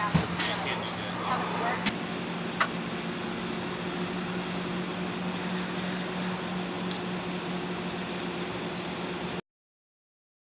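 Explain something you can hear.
An engine idles steadily nearby.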